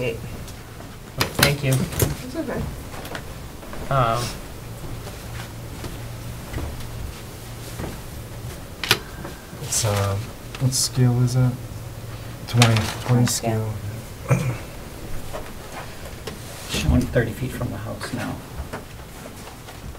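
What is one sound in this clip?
Several adults talk quietly among themselves at a table, with voices overlapping.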